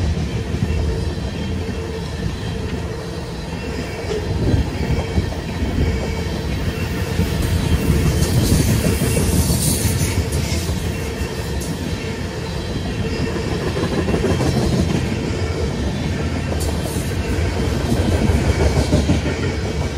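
A freight train rumbles past close by, its wheels clattering over the rail joints.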